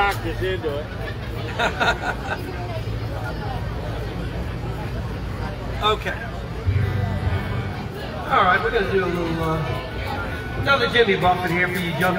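A man plays an acoustic guitar through a loudspeaker.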